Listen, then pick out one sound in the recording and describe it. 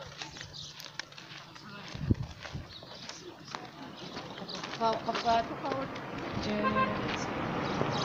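Footsteps crunch on a dirt road.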